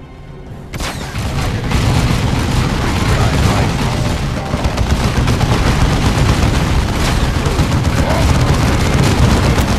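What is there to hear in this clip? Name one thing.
Explosions boom in a battle.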